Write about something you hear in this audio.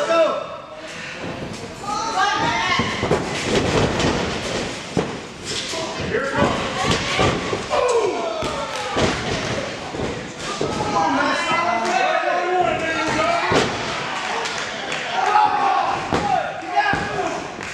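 A crowd shouts and cheers.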